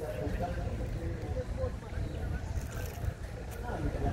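A plastic wrapper crinkles in a child's hands.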